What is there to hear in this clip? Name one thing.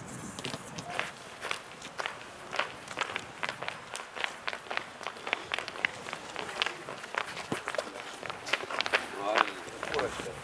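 Footsteps click and tap on a hard floor.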